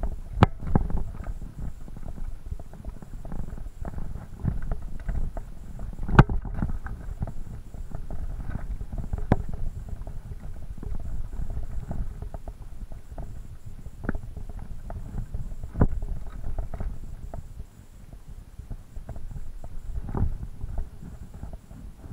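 Mountain bike tyres crunch and bump over a rocky dirt trail.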